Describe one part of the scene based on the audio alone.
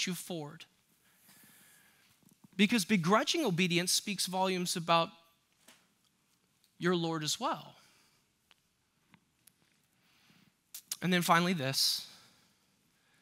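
A young man speaks calmly into a microphone, with pauses, in a large room with a slight echo.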